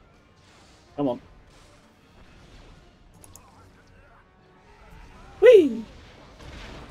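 A lightsaber swooshes through the air.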